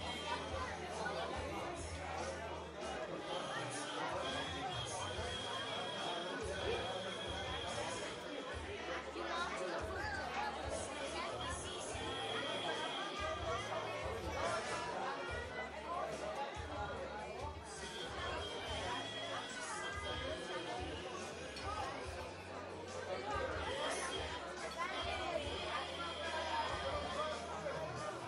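A crowd of children and adults chatters nearby.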